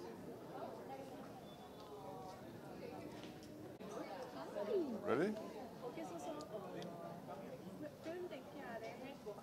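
Men and women talk over one another nearby.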